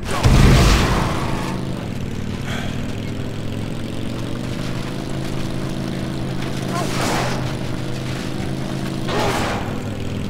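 A quad bike engine drones steadily.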